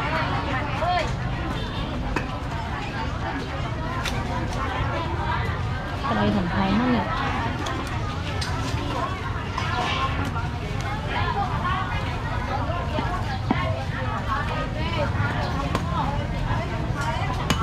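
Many voices of men and women chatter close by and farther off in a busy outdoor crowd.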